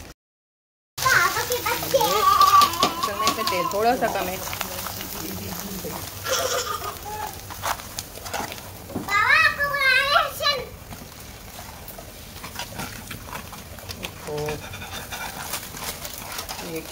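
Hot oil sizzles and crackles as dough fries.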